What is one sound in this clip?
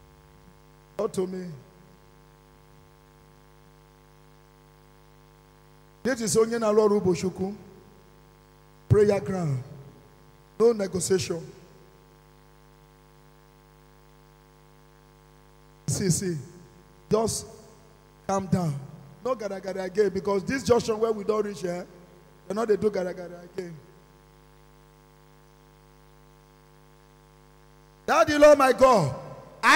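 A man speaks forcefully into a microphone in bursts, heard through loudspeakers in a room.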